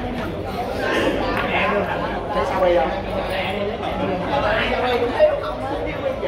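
Billiard balls clack together on a table.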